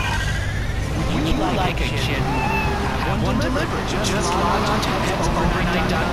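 A car engine hums steadily as the car drives off.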